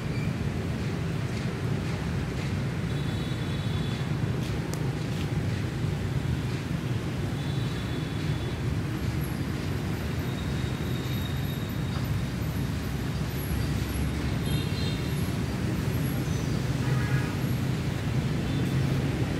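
Wind gusts roar outdoors.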